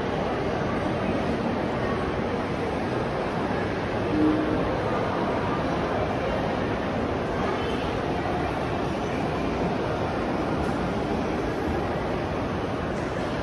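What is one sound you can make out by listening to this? A crowd murmurs indistinctly throughout a large echoing hall.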